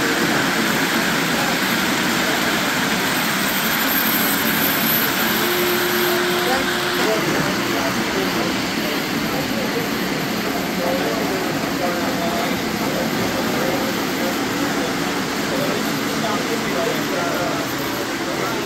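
A crowd of men chat nearby.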